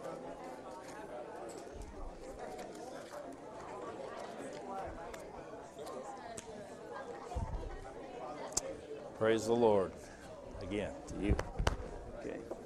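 Men and women chat at once in a room that echoes a little.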